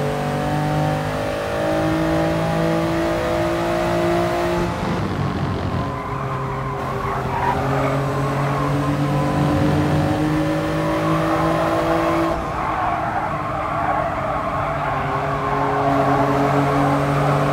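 A racing car engine roars, its pitch rising and falling with gear shifts.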